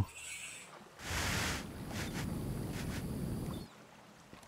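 A blowtorch hisses and sparks against metal.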